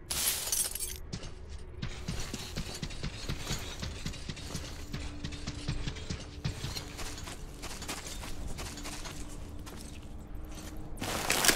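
Footsteps crunch on dry gravel and sand.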